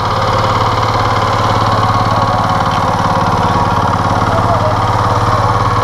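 A man talks nearby over the engine.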